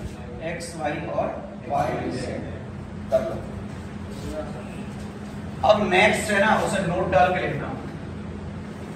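A man speaks with animation close by, in a lecturing tone.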